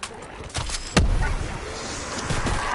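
An explosion booms with crackling fire.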